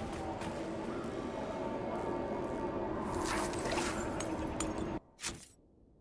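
A magical barrier hums and crackles loudly.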